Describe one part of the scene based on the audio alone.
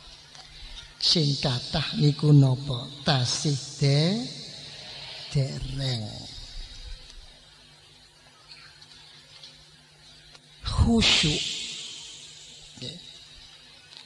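An elderly man speaks slowly and calmly through a microphone.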